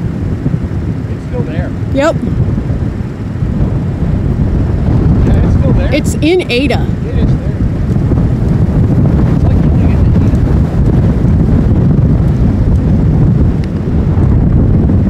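Strong wind buffets and roars loudly outdoors.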